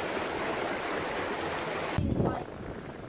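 A shallow stream rushes and splashes over rocks.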